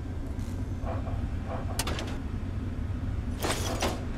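A metal filing drawer slides open with a clank.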